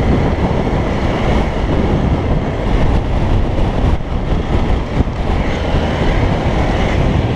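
Tyres crunch over sand and dirt.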